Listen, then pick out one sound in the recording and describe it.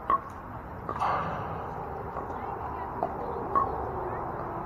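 Paddles pop sharply against a plastic ball outdoors.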